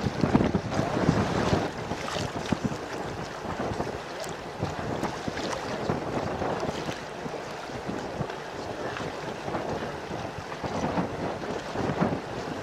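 Water splashes against the hull of a passing sailboat.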